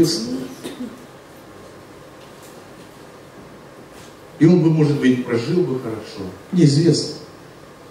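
A man speaks calmly into a microphone, heard through loudspeakers in a room.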